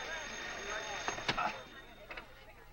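Men scuffle and thump against a wall.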